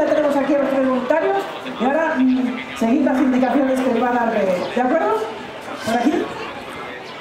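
A woman speaks with animation through a loudspeaker in the open air.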